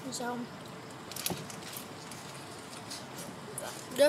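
A plastic bottle crinkles as a young girl drinks from it.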